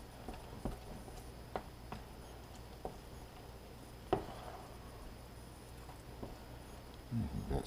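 Hands squish and knead sticky dough in a bowl.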